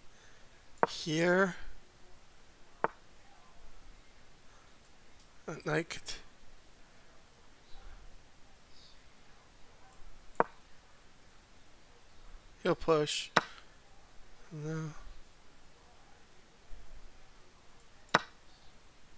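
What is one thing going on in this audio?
Short wooden clicks sound as chess pieces are moved.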